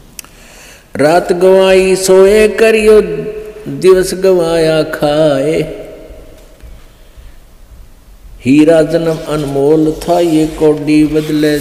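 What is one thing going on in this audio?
An elderly man chants in a slow, drawn-out voice close to a microphone.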